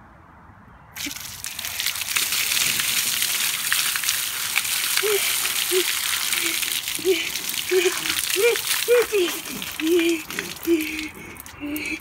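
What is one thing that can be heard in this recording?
Water splashes down heavily onto a young boy outdoors.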